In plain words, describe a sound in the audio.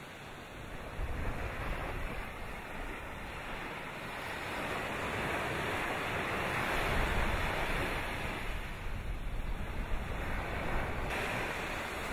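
A volcano erupts far off with a deep, rumbling roar.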